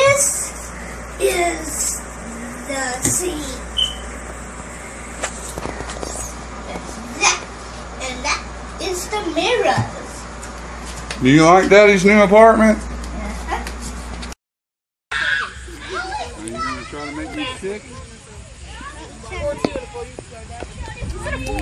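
A young boy talks and shouts excitedly up close.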